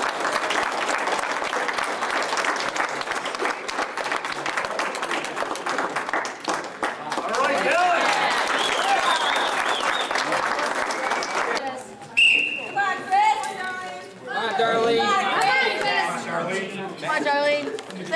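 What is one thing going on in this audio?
Voices echo in a large hall.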